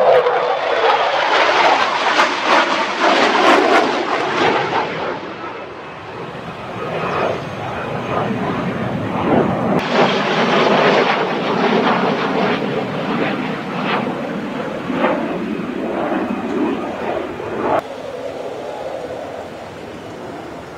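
A jet engine roars loudly overhead, rising and falling as the jet passes.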